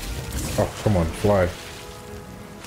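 Water splashes as someone dives in.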